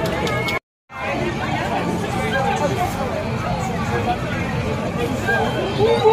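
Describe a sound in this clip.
A crowd of people chatter outdoors nearby.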